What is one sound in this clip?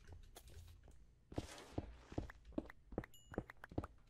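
Blocks crunch and thud as they are broken in quick succession.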